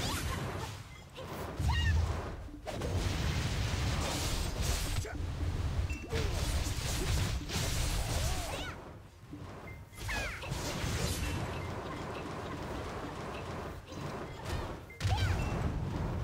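Swords swoosh and clash in fast combat bursts.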